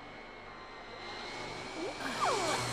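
A vacuum cleaner whirs steadily.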